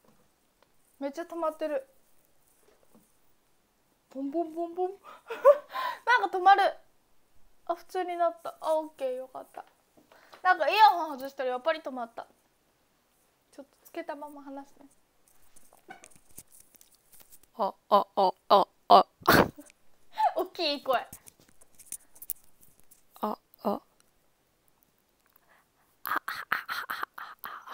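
A young woman talks to a microphone close by, with animation and in short bursts.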